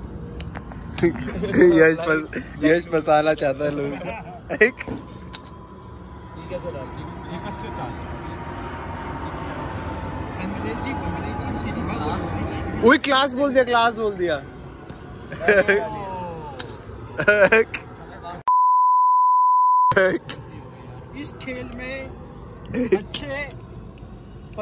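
Young men talk and laugh together close by.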